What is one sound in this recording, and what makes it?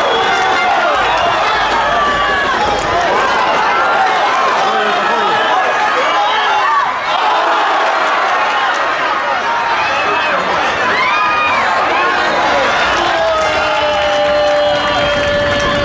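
A crowd chants and sings loudly in the stands.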